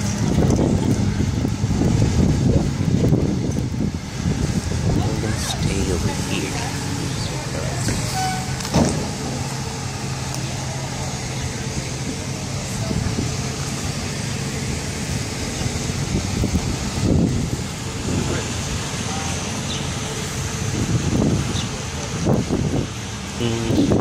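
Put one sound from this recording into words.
School bus engines idle with a steady low rumble.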